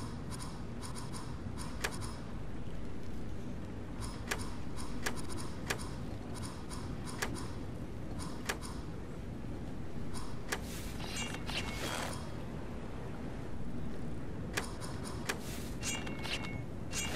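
Game buttons click as they are selected.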